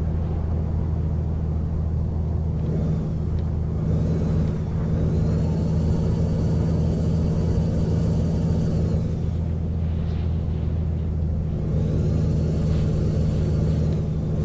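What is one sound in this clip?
A truck engine hums with a deep, steady drone.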